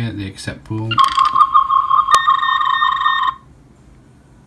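A handheld electronic device gives off a rapid, pulsing electronic warble.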